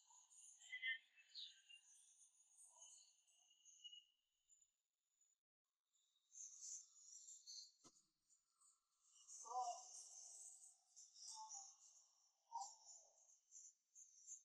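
A young woman speaks quietly close by.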